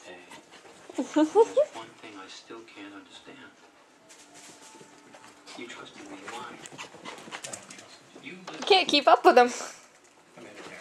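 A small dog barks sharply.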